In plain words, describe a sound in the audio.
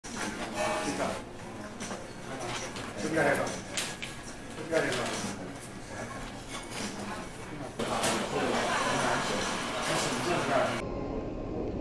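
Several people chat nearby in a busy room.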